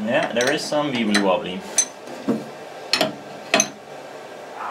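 Metal tools click and clank against a machine.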